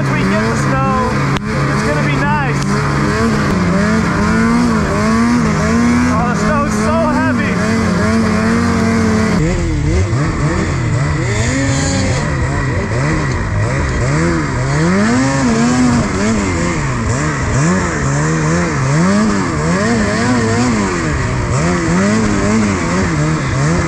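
A snowmobile engine roars and revs up and down close by.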